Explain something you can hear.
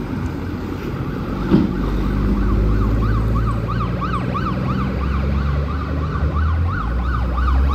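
A heavy truck engine rumbles deeply as it pulls away.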